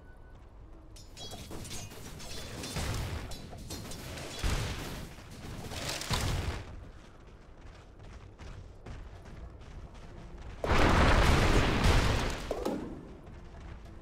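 Fantasy battle sound effects clash and burst in bursts.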